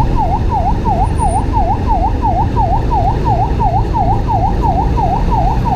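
An ambulance siren yelps close by in a fast, repeating rise and fall.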